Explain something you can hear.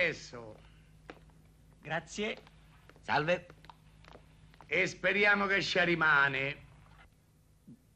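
An elderly man speaks loudly and with animation.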